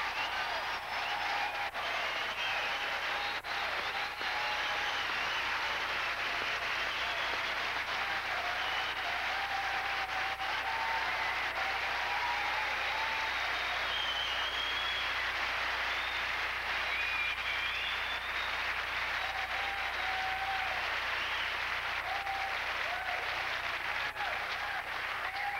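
A classical guitar is plucked softly.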